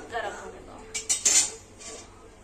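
A metal spatula scrapes against a metal pan.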